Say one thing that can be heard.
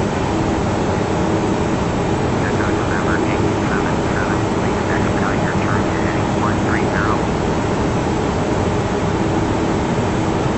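Engines and rushing air roar steadily.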